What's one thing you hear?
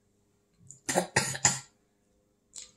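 A woman gasps loudly as if from spicy food.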